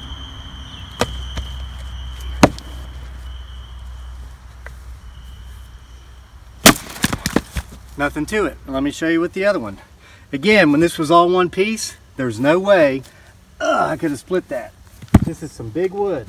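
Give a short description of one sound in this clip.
An axe strikes and splits wood with sharp cracks.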